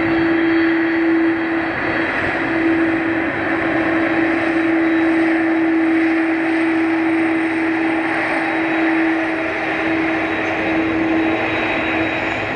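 A jet airliner's engines whine and roar steadily as it taxis close by.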